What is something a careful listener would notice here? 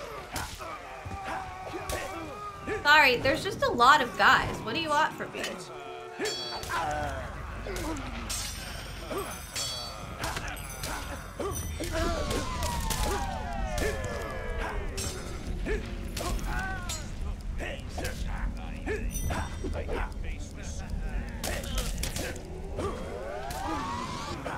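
Swords clash and slash.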